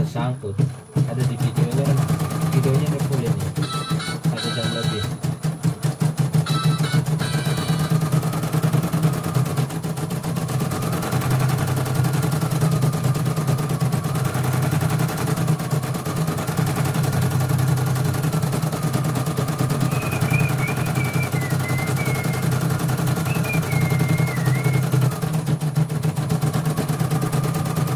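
An embroidery machine hums and stitches with a rapid steady rattle.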